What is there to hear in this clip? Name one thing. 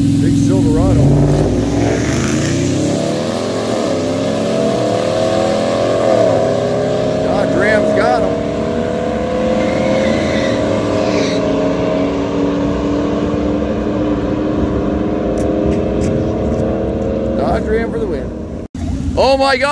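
Race engines roar loudly and rise in pitch as trucks speed away.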